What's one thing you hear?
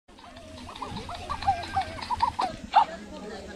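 A toy dog chirps an electronic tune.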